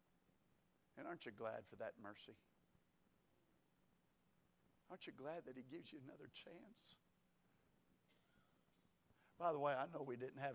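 A middle-aged man speaks calmly into a microphone in a large room, pausing between phrases.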